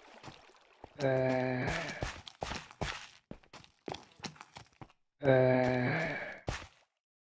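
A zombie groans in a low, rasping voice.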